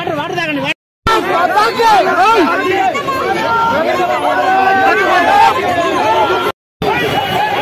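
A crowd of men and women shout and argue excitedly.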